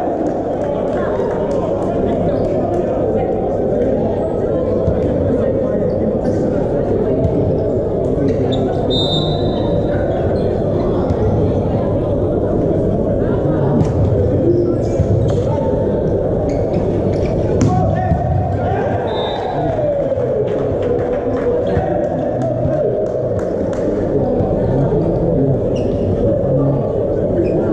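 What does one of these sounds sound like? Hands strike a volleyball in a large echoing indoor hall.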